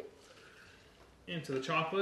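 Liquid pours into a plastic cup.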